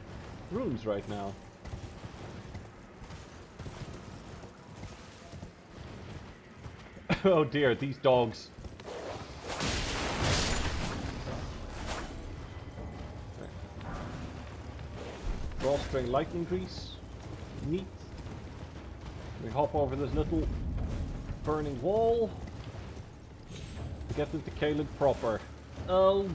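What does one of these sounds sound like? A horse gallops with heavy hoofbeats on hard ground.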